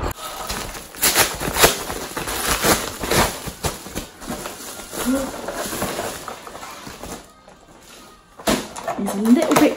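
Plastic packaging crinkles and rustles as it is torn open.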